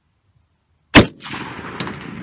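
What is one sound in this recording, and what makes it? A rifle fires a single loud shot outdoors, followed by a rolling echo.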